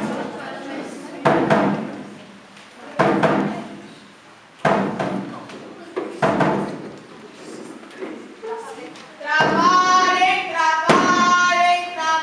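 A young man speaks loudly through a microphone in an echoing room.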